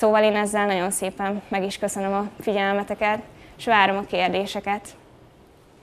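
A young woman speaks into a microphone to an audience.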